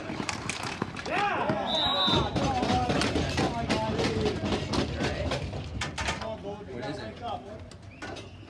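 A crowd of men and boys shout and cheer outdoors.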